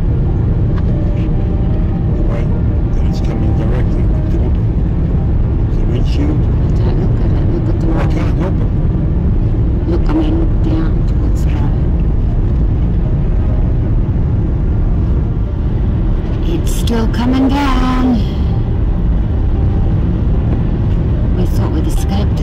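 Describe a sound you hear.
Tyres crunch and hiss over a snowy road.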